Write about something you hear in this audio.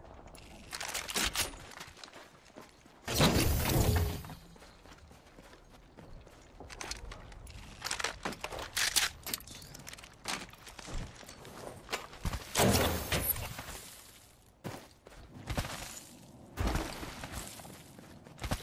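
Sharp video game sound effects clatter and whoosh in short bursts.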